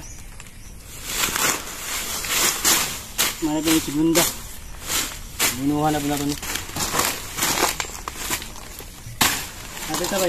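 A machete chops into a plant stalk with sharp thuds.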